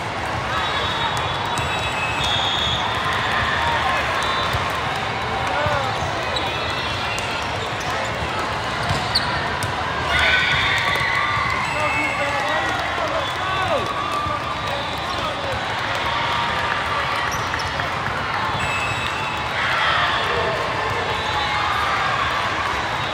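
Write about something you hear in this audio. A large hall echoes with the steady murmur of a crowd.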